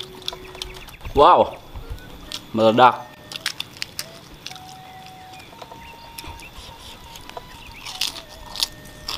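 A man chews and smacks his lips close to a microphone.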